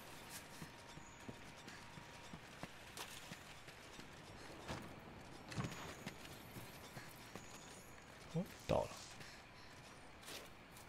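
Footsteps patter softly on rocky ground.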